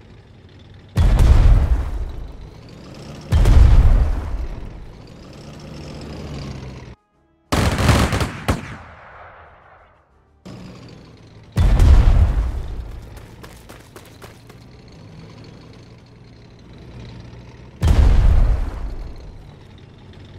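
Heavy explosions boom several times and die away with a rumble.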